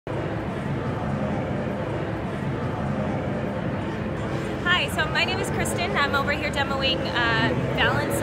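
A crowd murmurs steadily in a large hall.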